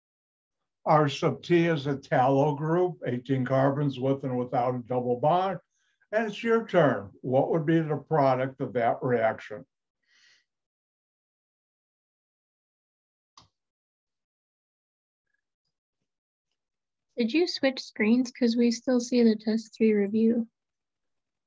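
A man speaks calmly through an online call microphone, lecturing in pauses.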